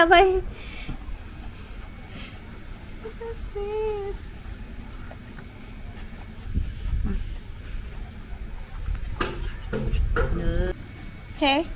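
A puppy whines in high yelps.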